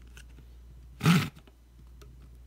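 A plastic part snaps into place with a sharp click.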